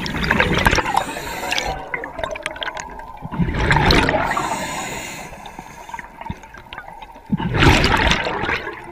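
Scuba breathing bubbles burst and gurgle underwater in repeated gushes.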